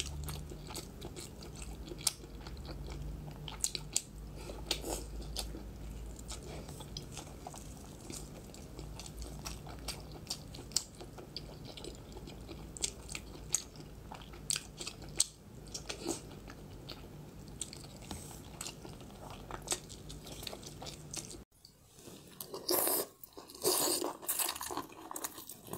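A woman chews and smacks her lips loudly close to a microphone.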